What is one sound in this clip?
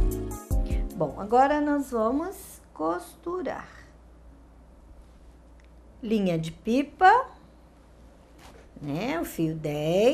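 A middle-aged woman talks calmly and clearly, close by.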